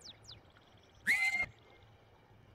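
A horse whinnies.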